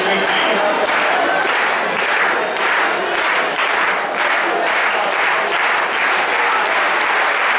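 A stadium crowd claps in a steady, quickening rhythm.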